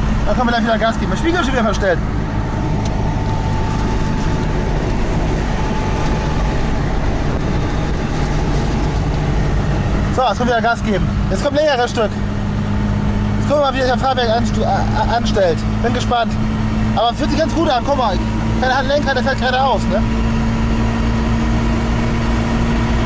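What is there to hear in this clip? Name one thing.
A car engine drones steadily from inside the car.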